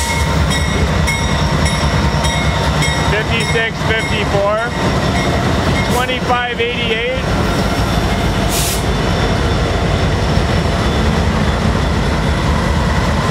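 Train wheels clack steadily over the rail joints.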